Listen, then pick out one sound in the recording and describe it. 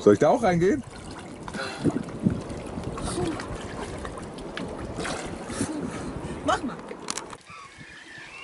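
Water splashes around a swimmer.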